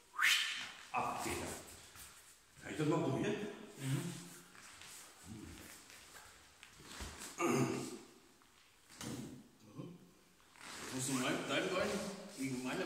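A middle-aged man talks calmly, explaining.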